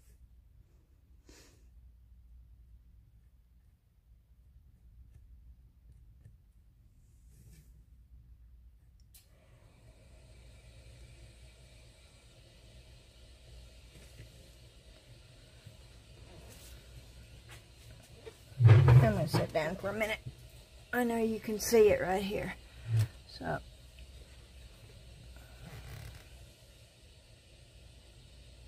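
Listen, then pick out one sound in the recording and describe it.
A marker pen squeaks softly across paper.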